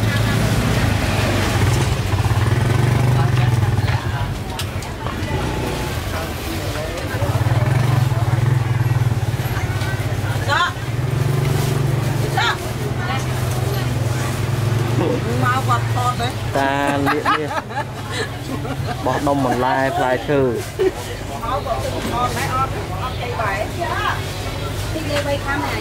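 A busy outdoor crowd chatters all around.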